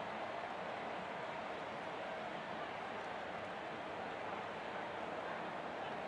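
A large stadium crowd murmurs and cheers in a steady roar.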